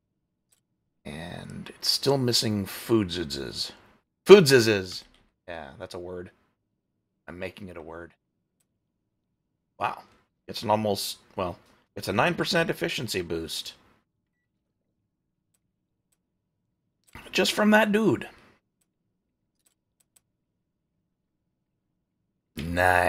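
A man talks casually into a close microphone, in short bursts with pauses.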